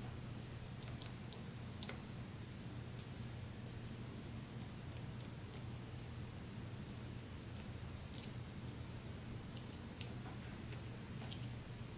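A thin tool taps and dabs in a tiny dish.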